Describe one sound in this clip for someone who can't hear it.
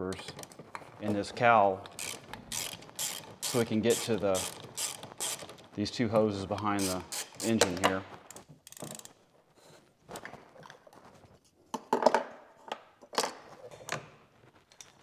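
Plastic engine parts click and knock as hands work on them.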